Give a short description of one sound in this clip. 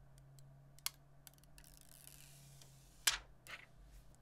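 A protective film peels off a phone with soft crackles.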